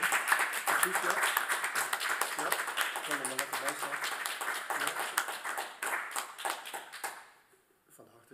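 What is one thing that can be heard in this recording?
An audience applauds in an echoing hall.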